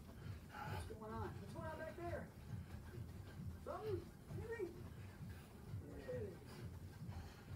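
A man's feet thump rhythmically on the floor.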